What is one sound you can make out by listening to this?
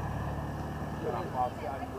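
A man calls out nearby.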